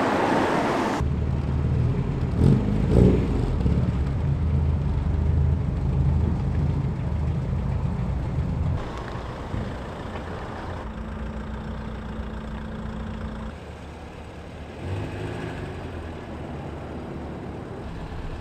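A car engine idles and revs.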